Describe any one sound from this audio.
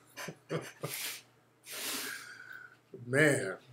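A man laughs softly close to a microphone.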